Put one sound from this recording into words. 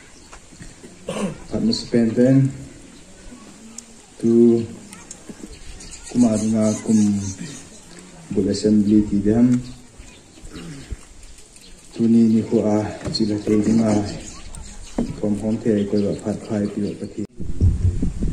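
A man speaks loudly into a microphone through a loudspeaker, in short bursts with pauses.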